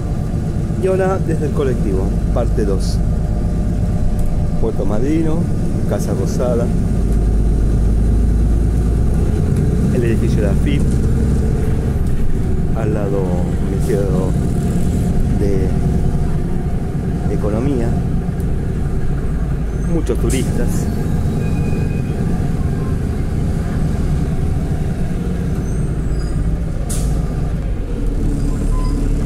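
Street traffic rumbles steadily nearby.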